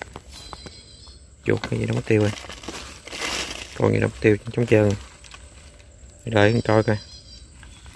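A wire trap rattles as it is lifted and handled.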